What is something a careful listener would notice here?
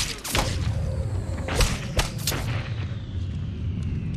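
A loud explosion blasts with a deep, rumbling roar.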